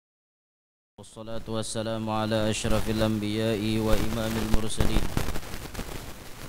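A young man chants melodically into a microphone, heard through loudspeakers.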